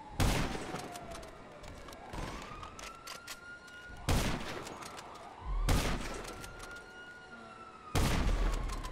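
A rifle fires loud, sharp shots, each followed by a rolling echo.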